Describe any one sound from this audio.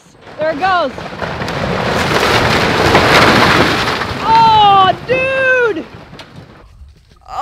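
A barn collapses with a loud crash and rumble of splintering wood.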